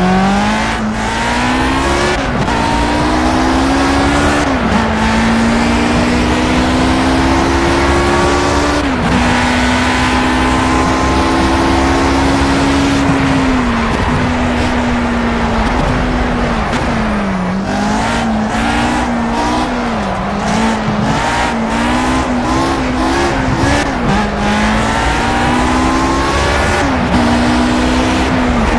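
A racing car engine roars loudly, rising in pitch as it speeds up and dropping sharply at each gear change.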